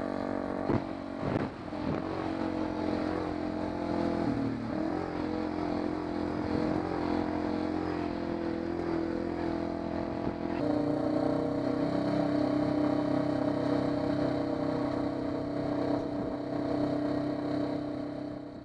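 An all-terrain vehicle engine drones steadily up close.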